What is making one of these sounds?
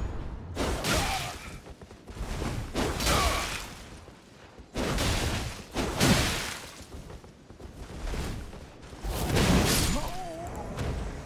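Blades slash and clash in quick, heavy bursts.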